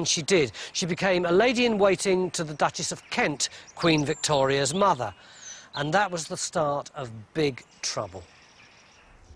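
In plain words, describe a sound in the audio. A middle-aged man speaks calmly to the listener outdoors.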